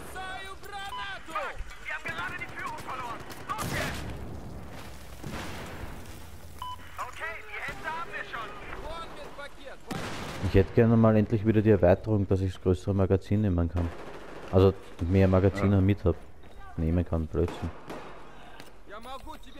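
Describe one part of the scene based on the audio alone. Gunshots ring out in short bursts.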